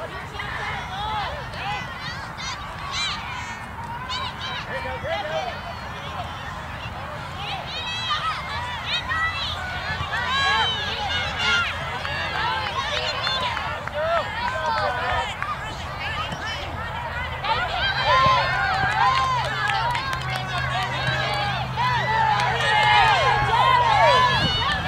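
Spectators shout and cheer from close by.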